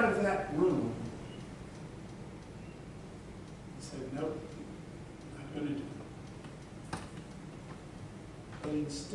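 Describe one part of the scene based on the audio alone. A man speaks with pauses, heard from a distance in an echoing room.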